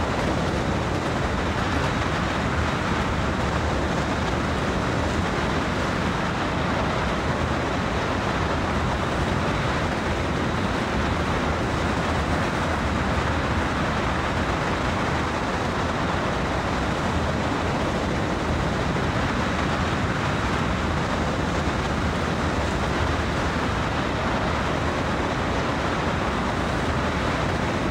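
Train wheels roll and clatter over rails.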